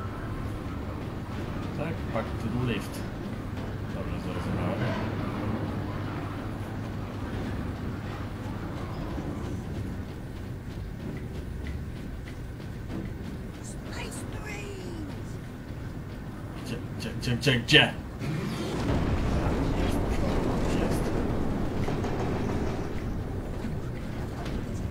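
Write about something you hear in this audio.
A young man talks casually into a nearby microphone.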